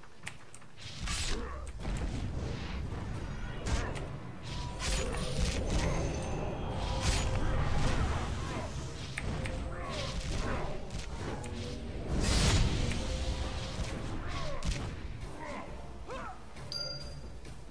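Magic blasts and blows crash loudly in a fierce battle.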